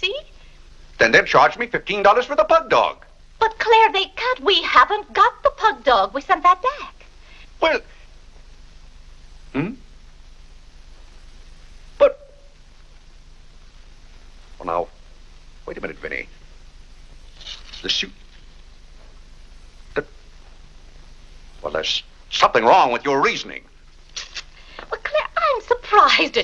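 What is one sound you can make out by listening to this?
A man speaks theatrically, close by.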